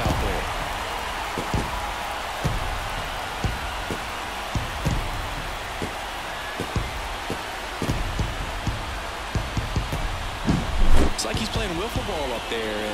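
A large stadium crowd cheers loudly and steadily.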